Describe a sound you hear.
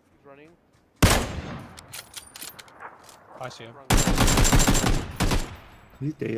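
Rifle shots ring out loudly.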